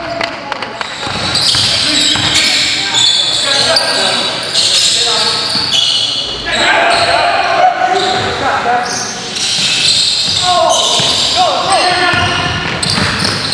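Young men shout to each other across the echoing gym.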